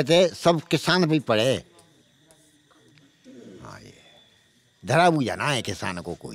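An elderly man speaks loudly and with feeling into a microphone, close up.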